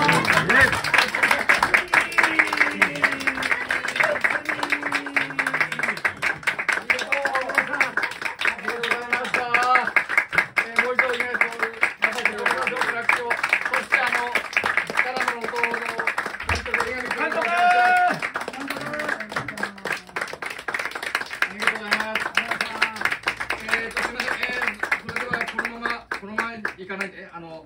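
An elderly woman sings into a microphone.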